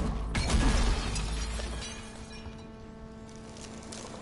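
Glass shatters with a loud burst, and shards tinkle as they scatter.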